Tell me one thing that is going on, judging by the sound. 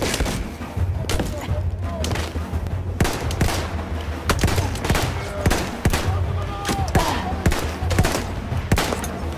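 A rifle fires single shots, each crack echoing.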